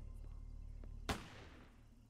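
Footsteps walk slowly along a pavement.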